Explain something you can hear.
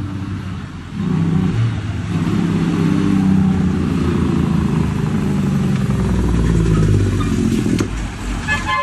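A heavy truck's diesel engine rumbles loudly as it pulls up close.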